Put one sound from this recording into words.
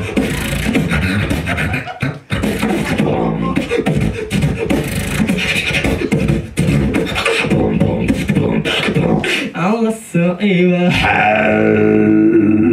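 A young man makes fast rhythmic beats with his mouth into a microphone, heard loudly through loudspeakers.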